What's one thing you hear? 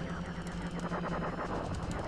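A video game explosion booms.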